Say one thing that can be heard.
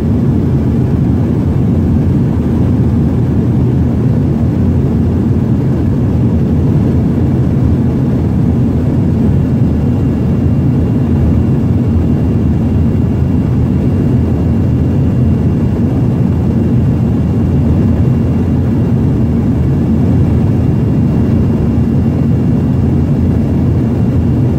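Engine and airflow roar fills the cabin of a small twin-turbofan regional jet in flight.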